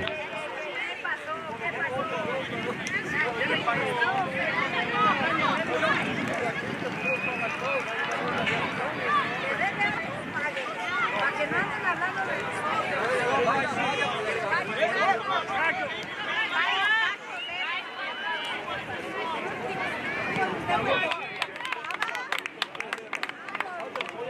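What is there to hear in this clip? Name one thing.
Many children shout and call out at once across an open field.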